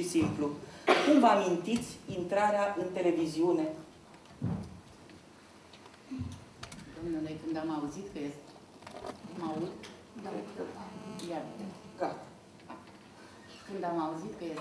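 An elderly woman speaks calmly through a microphone.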